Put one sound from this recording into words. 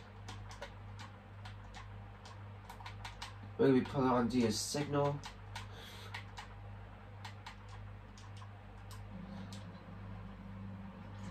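Game controller buttons click rapidly.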